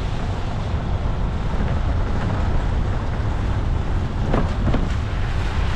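A vehicle engine rumbles steadily as it drives slowly.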